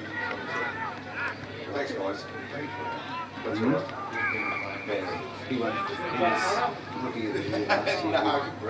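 Football players shout to one another across an open field.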